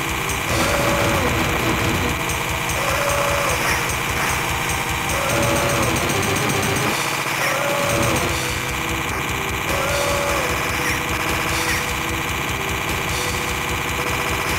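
A crackling electric weapon fires continuously.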